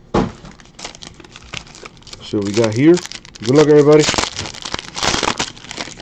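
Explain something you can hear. A foil pack crinkles and tears open.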